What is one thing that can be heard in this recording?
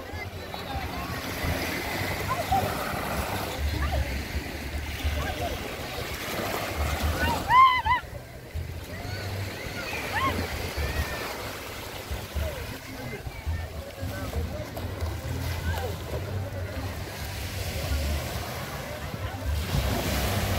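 Small waves wash onto a sandy beach.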